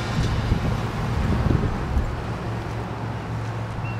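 A pickup truck drives slowly past nearby.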